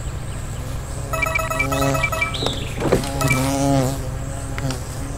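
Bright chimes and jingles ring out in a video game.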